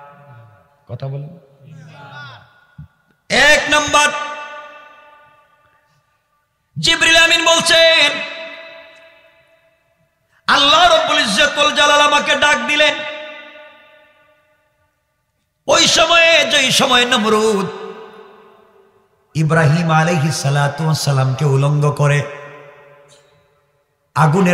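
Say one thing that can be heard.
A young man chants loudly into a microphone in long, echoing phrases with pauses between them.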